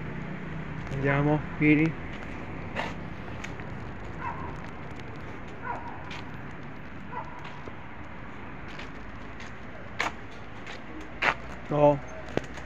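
A dog barks nearby.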